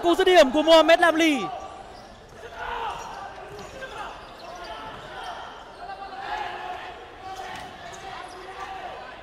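A ball thuds as players kick it across a hard indoor court.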